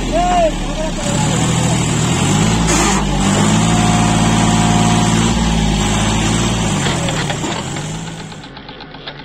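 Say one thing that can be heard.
A tractor engine chugs loudly close by, its pitch rising and falling.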